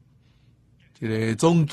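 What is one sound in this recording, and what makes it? An elderly man speaks calmly into a microphone.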